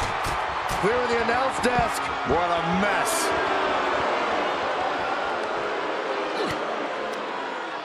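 A large crowd roars and cheers in a big arena.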